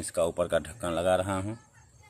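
Bees buzz softly close by.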